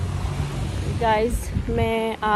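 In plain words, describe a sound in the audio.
A woman speaks close by outdoors.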